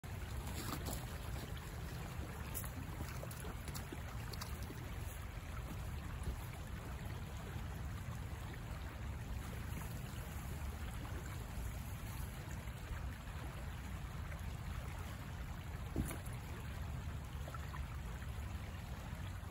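A river rushes steadily nearby.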